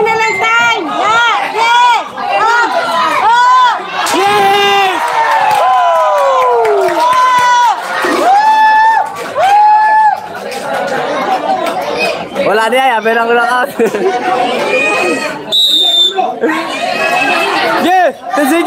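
Spectators shout and cheer around a boxing ring.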